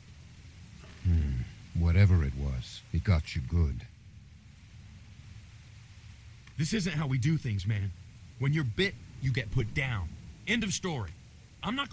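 A man talks into a headset microphone.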